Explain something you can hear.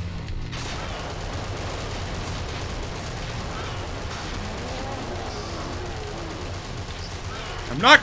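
A video game gun fires rapid shots.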